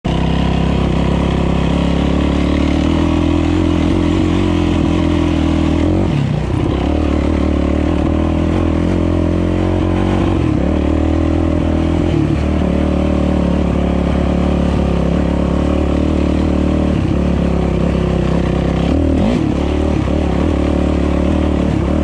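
A dirt bike engine roars loudly and steadily, with its pitch dipping and rising as the rider shifts and throttles.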